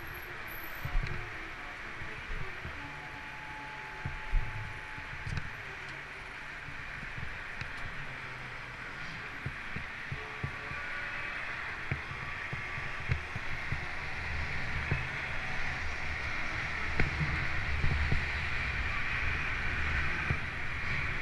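Bicycle tyres roll over concrete and thump over its joints.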